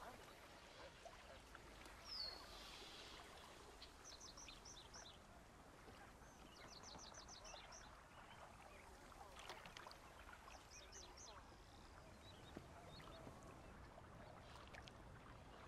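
A stream of water flows and gurgles.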